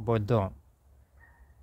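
A man speaks close by, calmly.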